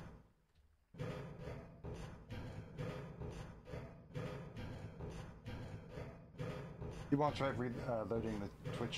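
Footsteps clang steadily on a metal ladder.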